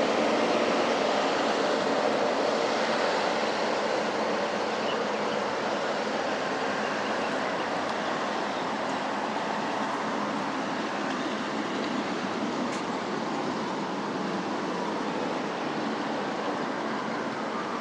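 Traffic passes steadily on a nearby road outdoors.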